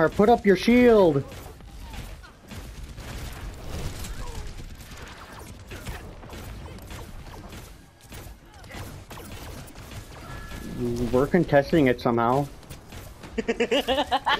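A heavy gun fires bursts of rapid shots.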